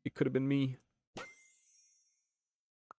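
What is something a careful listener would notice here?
A short electronic sound effect chimes.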